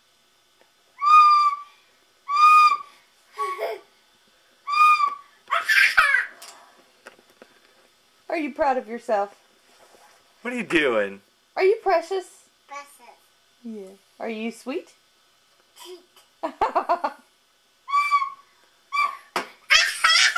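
A toddler girl toots short notes on a recorder close by.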